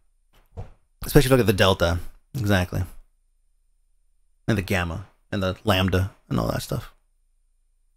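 A man speaks calmly and close into a microphone, with pauses.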